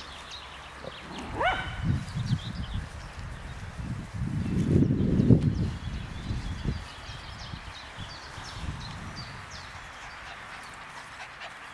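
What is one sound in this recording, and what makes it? A dog pads across grass.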